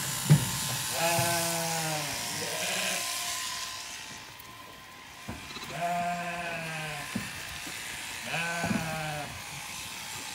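Sheep bleat loudly nearby.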